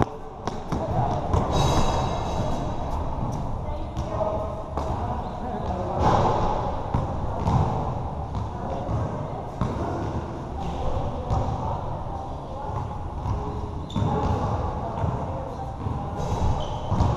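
A basketball bounces on a hard court, echoing in a large open hall.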